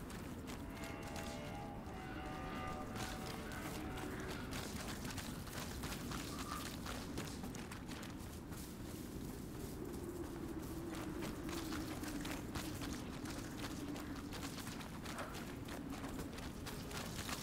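Footsteps crunch slowly over soft, littered ground.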